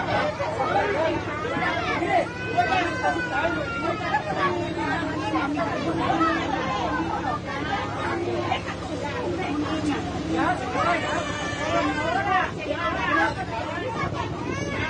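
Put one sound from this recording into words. Several people shout and argue loudly and close by.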